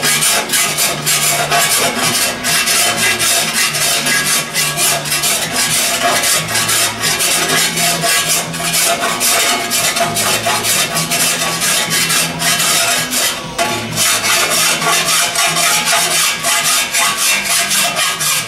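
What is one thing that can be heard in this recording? A hammer taps rapidly and steadily on sheet metal with a ringing clang.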